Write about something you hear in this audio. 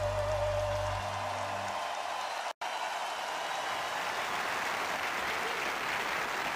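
A large crowd cheers and applauds in a big hall.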